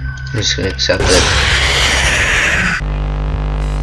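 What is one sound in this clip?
A loud, harsh screech suddenly blares from an animatronic figure.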